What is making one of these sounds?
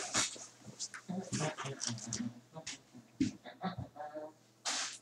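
Footsteps move away across a room.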